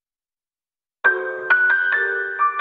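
A piano plays chords and a melody.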